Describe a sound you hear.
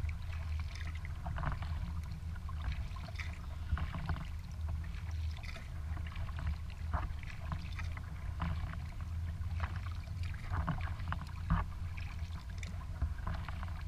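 Wind rumbles across a microphone outdoors.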